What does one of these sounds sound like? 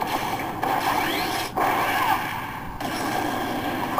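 A loud magical blast whooshes and crackles.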